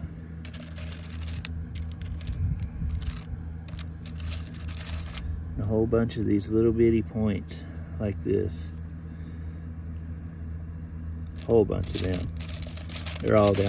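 Small stones clatter and scrape as fingers sift through them.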